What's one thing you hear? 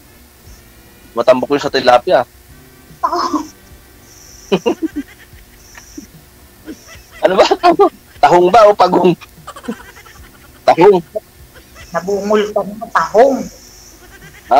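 A middle-aged woman talks and laughs over an online call.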